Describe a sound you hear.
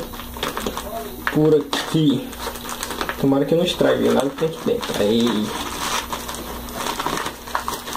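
Scissors snip through a plastic bag.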